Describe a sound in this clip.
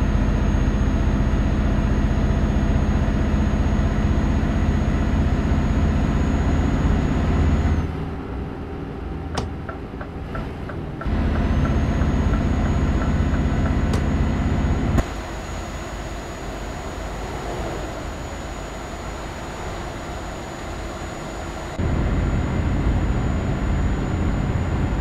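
A truck engine drones steadily with a low rumble, heard from inside the cab.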